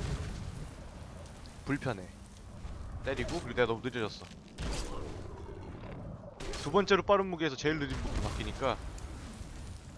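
Metal weapons clang and thud in a fight.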